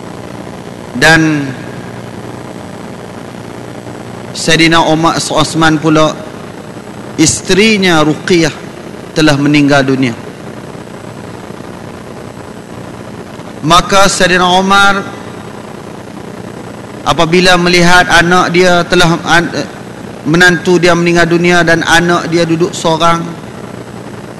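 A man speaks into a microphone in measured bursts with pauses, heard through a loudspeaker.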